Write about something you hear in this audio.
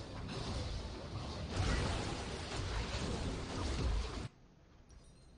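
Loud fighting effects from a video game clash and burst.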